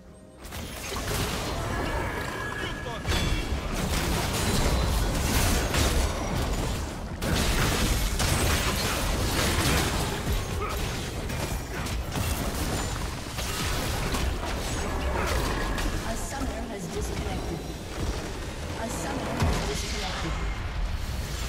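Game spell effects crackle and boom in a busy fight.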